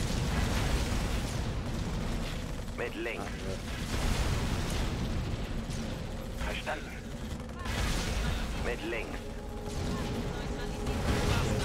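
Explosions and gunfire rumble in a battle.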